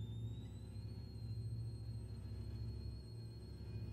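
Timpani rumble in a soft, steady roll.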